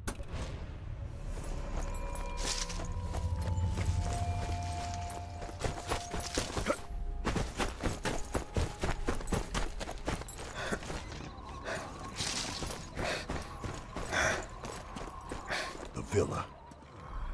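Footsteps run quickly through grass and over hard ground.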